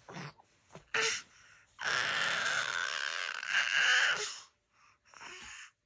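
A baby babbles and coos close by.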